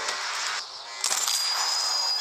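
A rifle shot cracks.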